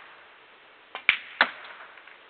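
A cue strikes a ball with a sharp tap.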